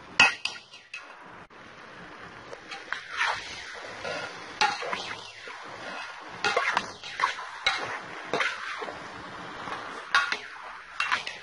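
Vegetables sizzle in a hot pot.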